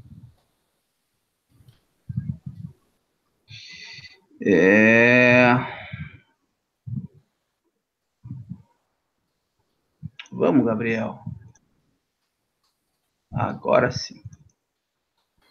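A young man speaks calmly into a close microphone, in short bursts with pauses.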